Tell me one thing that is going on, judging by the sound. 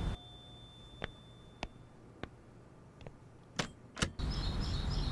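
A lock clicks and a door opens.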